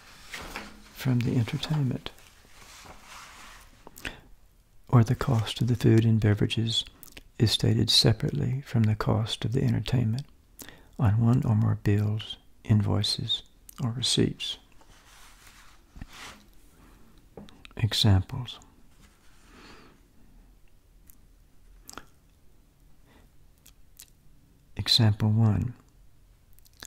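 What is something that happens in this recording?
An elderly man reads aloud calmly into a close microphone.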